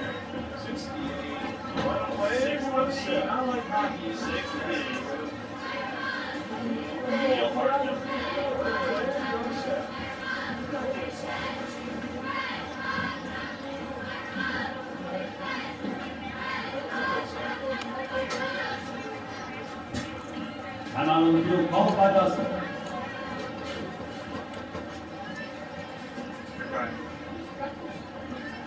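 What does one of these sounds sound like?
Young men talk and shout nearby.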